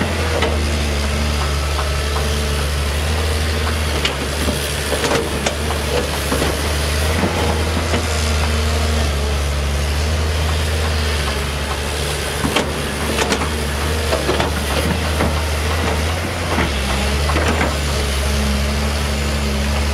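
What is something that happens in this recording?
A diesel excavator engine rumbles steadily nearby.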